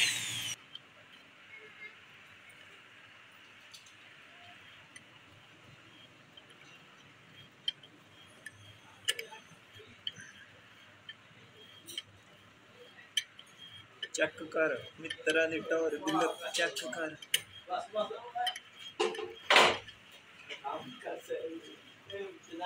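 A tap scrapes and creaks as it cuts a thread in metal.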